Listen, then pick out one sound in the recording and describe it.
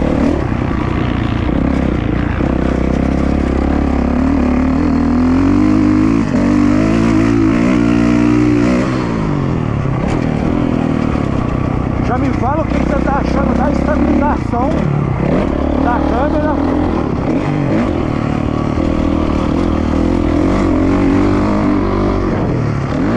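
A motocross bike engine revs hard and changes pitch as it speeds up and slows down.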